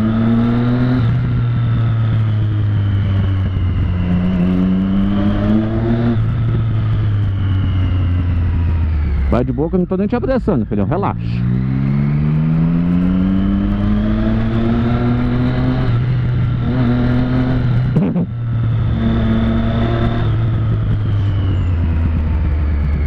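A motorcycle engine hums up close, rising and falling in pitch as the rider speeds up and slows down.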